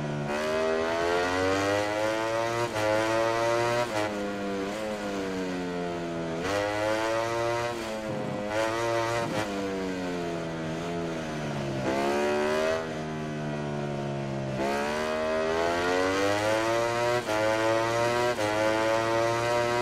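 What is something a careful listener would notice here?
A motorcycle engine revs high and changes pitch as gears shift up and down.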